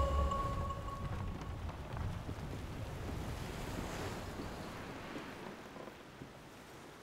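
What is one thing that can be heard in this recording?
Sea waves wash and roll in wind.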